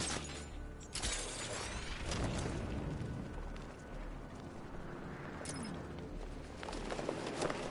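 Wind rushes loudly past during a fast glide.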